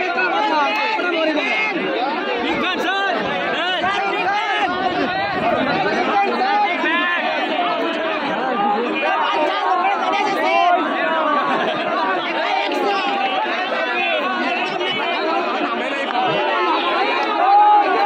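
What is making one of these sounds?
A large crowd of men and women chatters and calls out close by, outdoors.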